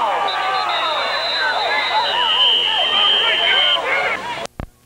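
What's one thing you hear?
A referee's whistle blows long, shrill blasts.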